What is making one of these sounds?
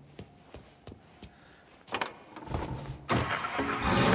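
A car door opens and slams shut.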